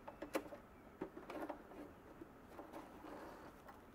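Fabric rustles as it is pulled from a sewing machine.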